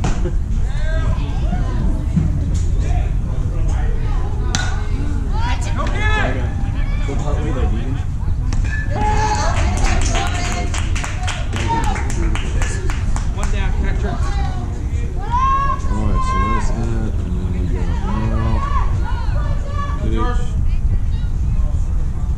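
Children and adults shout and cheer outdoors.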